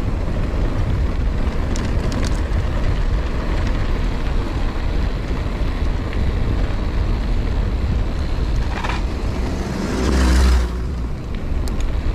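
Wind buffets the microphone in low, steady rumbles.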